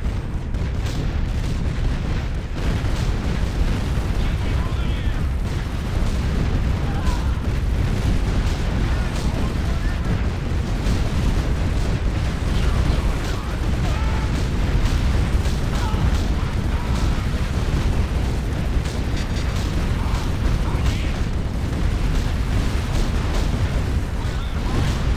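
Explosions boom and rumble in a game battle.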